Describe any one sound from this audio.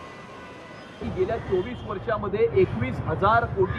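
A middle-aged man speaks steadily into a microphone, reporting.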